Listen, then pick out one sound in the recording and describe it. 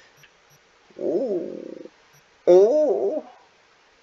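Short electronic menu tones sound as items are selected.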